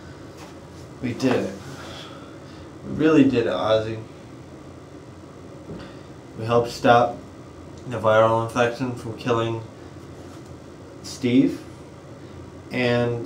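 A young man talks calmly close by, in short bursts with pauses.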